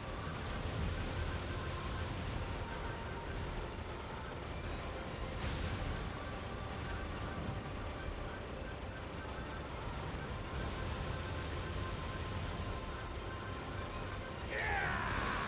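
Guns fire rapid shots.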